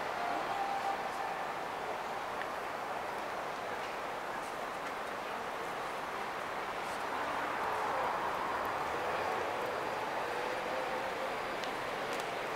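Many people talk in a low, steady murmur outdoors.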